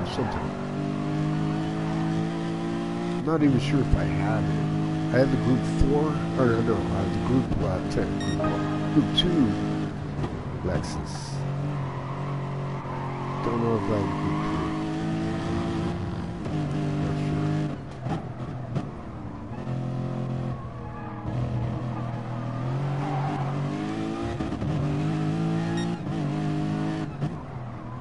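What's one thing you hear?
A racing car engine revs high and drops as gears shift.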